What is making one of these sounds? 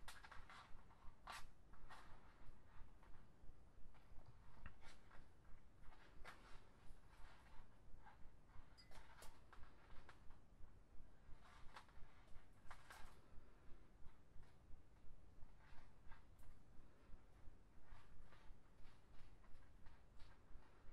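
Plastic strands rustle and click as fingers weave them.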